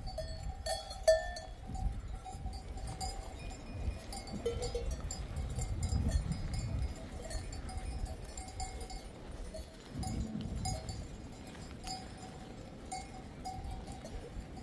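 Goats bleat across an open hillside.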